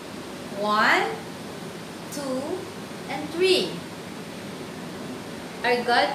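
A woman speaks animatedly and close by.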